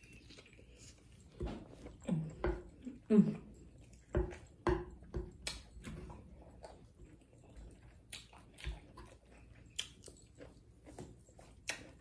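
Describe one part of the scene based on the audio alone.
A woman chews food with soft wet sounds close up.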